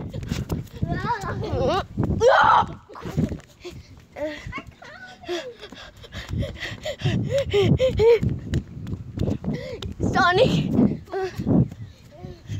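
A young boy talks loudly and with animation close to the microphone.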